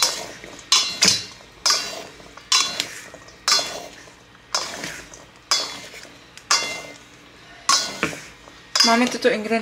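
Tongs toss pasta in a bowl with rhythmic, sharp clattering swishes.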